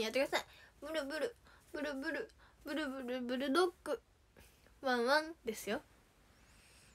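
A young girl sings brightly and close by.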